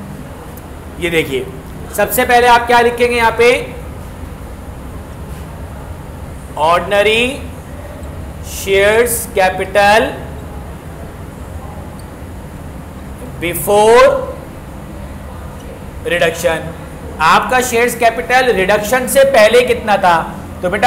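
A man speaks calmly and clearly nearby, in short bursts, as if teaching.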